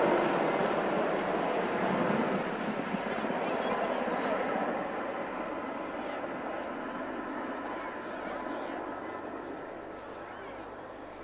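A heavy helicopter roars overhead and slowly draws away.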